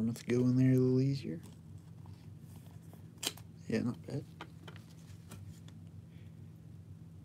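Trading cards slide and tap against each other.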